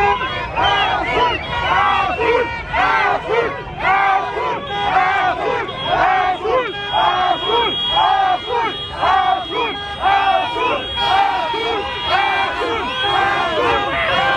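A crowd of men and women chants loudly and rhythmically outdoors.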